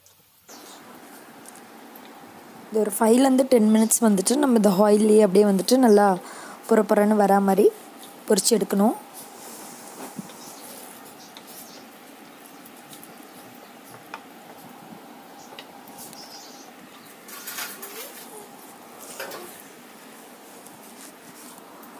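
Oil sizzles and bubbles steadily in a pan.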